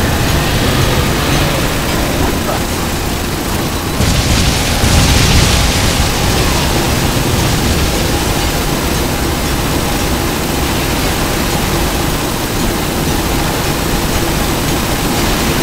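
Game weapons fire and explode in a dense, constant clatter.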